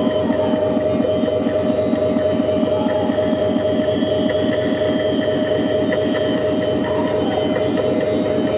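Electronic music with a fast pulsing beat plays loudly over speakers.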